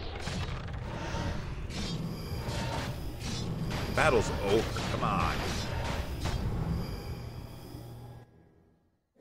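Swords clash and magic spells crackle in a fast game battle.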